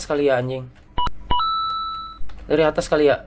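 Short electronic game tones beep.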